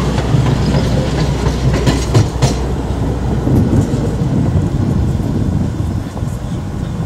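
A train rumbles and clatters past on the rails.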